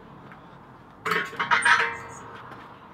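A metal stove clanks as it is set down on concrete.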